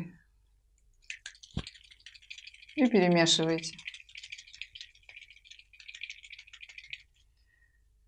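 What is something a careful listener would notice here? Gloved hands rustle and handle a small glass bottle with faint clicks.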